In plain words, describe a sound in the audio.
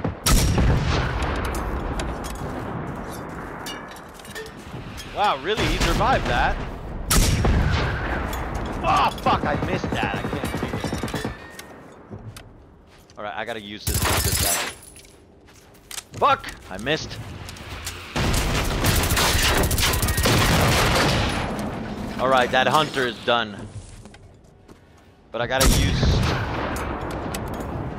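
Rocket shots go off with loud booming blasts.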